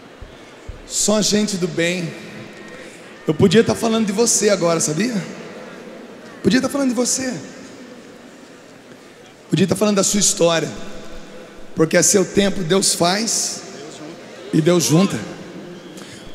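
A middle-aged man speaks calmly into a microphone, heard over loudspeakers in a large hall.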